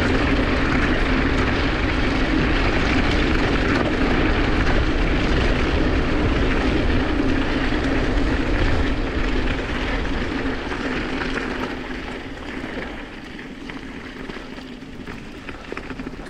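Bicycle tyres rumble and crunch over a rough gravel track.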